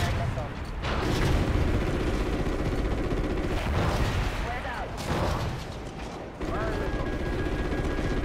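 A missile whooshes away from a helicopter.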